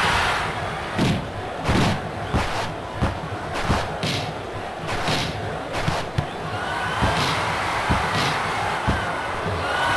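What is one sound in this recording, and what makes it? A football is kicked with sharp thuds in a video game.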